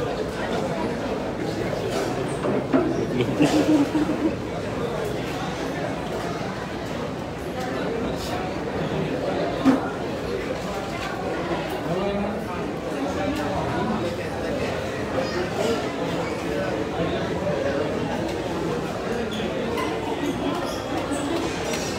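A crowd of men and women chatters all around in a large, echoing hall.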